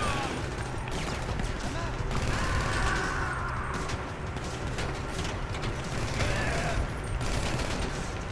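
Pistol shots crack in quick bursts outdoors.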